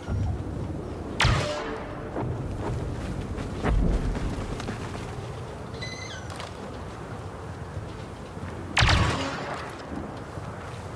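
Fires crackle nearby.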